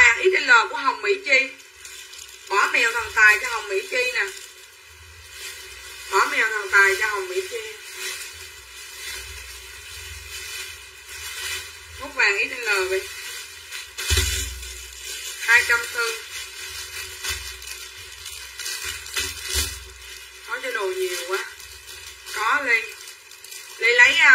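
A middle-aged woman talks close by in short bursts, calmly.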